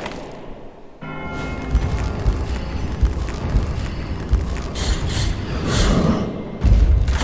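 Heavy footsteps thud on stone.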